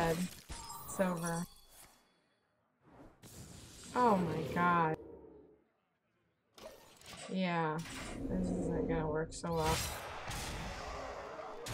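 Magical game effects whoosh and shimmer.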